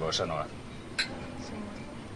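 Wine glasses clink together.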